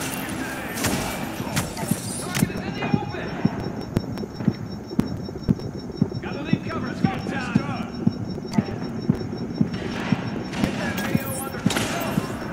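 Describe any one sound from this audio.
A rifle fires rapid, evenly spaced shots.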